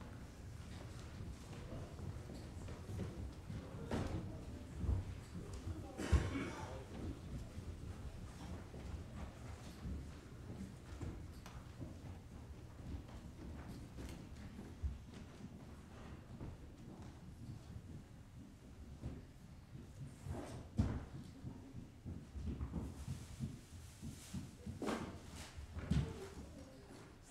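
A man speaks calmly in a large echoing room.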